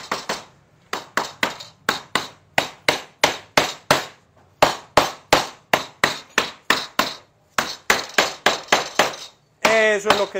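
A mallet knocks repeatedly on a wooden frame.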